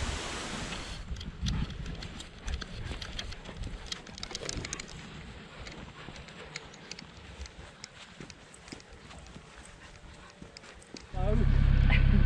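Footsteps tread along a dirt path.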